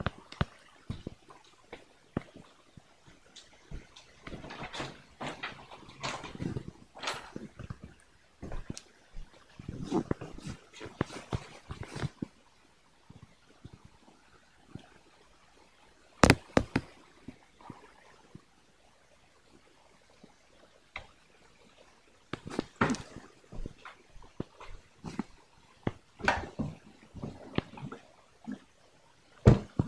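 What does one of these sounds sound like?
Fabric rustles and bumps close against the microphone as a soft toy is handled.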